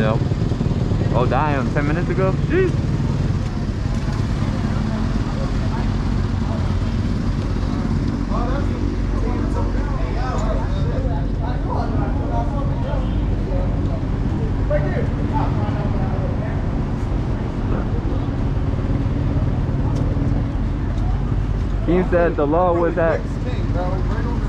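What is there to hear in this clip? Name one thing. Dirt bike engines rev loudly in sharp bursts nearby.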